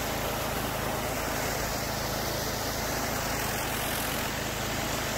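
A pressure washer's engine hums steadily.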